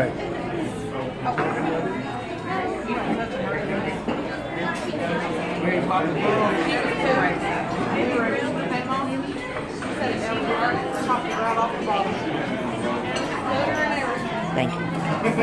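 Many men and women chatter at once in a busy, crowded room.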